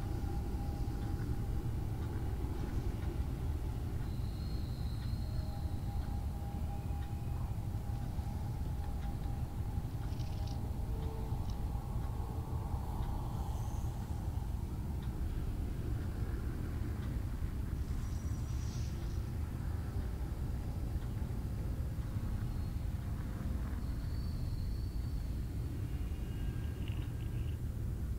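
A deep engine rumbles steadily.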